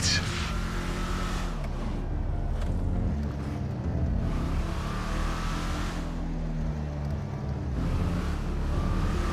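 A car engine hums and revs up and down as it drives.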